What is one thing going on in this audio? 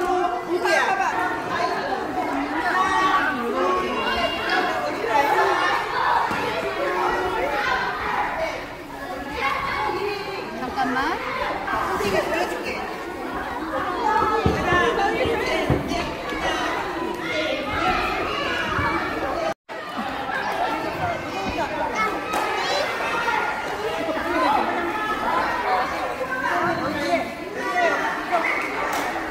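Young children chatter and call out all around in a large echoing hall.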